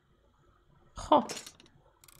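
A heavy metal lock mechanism clicks and slides into place.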